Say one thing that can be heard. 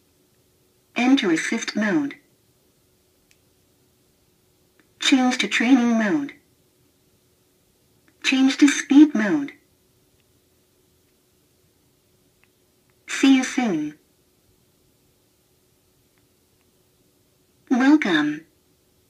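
A self-balancing scooter plays short electronic prompts through a small built-in speaker, several times.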